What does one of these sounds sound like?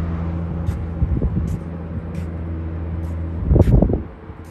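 Jet engines rumble steadily in the distance.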